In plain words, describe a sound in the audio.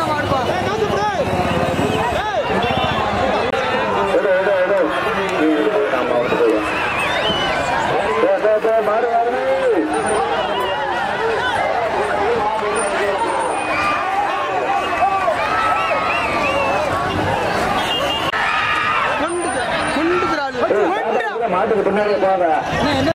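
A man announces excitedly through a loudspeaker.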